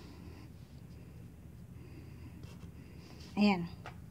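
A felt-tip marker squeaks as it draws lines on paper.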